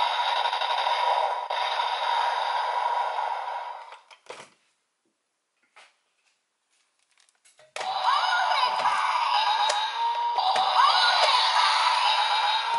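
A toy plays loud electronic music and sound effects.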